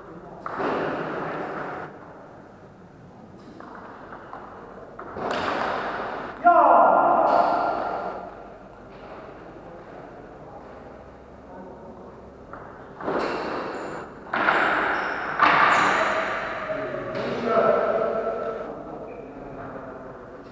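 A table tennis ball clicks back and forth between paddles and table.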